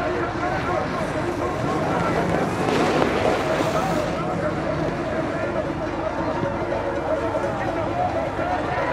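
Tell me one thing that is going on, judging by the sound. Snowboards scrape and hiss across hard snow.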